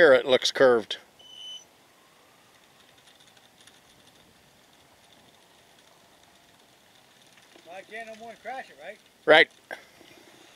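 A middle-aged man speaks casually nearby, outdoors.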